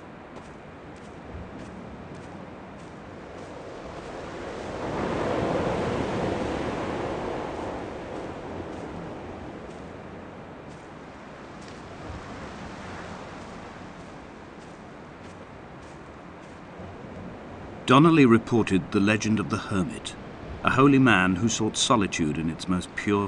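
Wind blows steadily outdoors, swelling for a few seconds.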